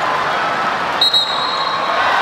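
A referee blows a short whistle blast twice.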